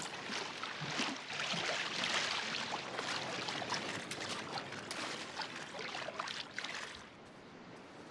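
Water splashes as someone wades through the shallows.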